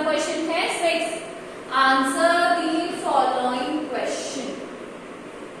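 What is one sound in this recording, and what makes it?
A woman speaks clearly and calmly nearby, as if teaching.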